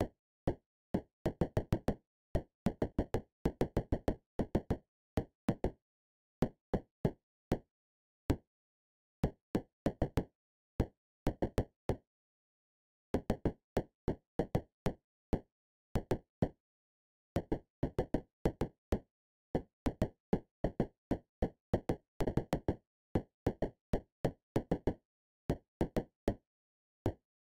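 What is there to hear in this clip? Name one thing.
Short electronic clicks pop in quick, uneven bursts with brief pauses between.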